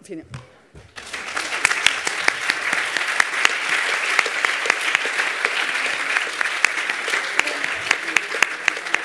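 An audience applauds steadily in a large space.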